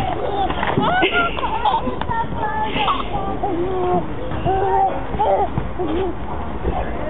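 A toddler squeals and laughs close by.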